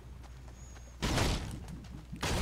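A pickaxe smashes into a wooden crate.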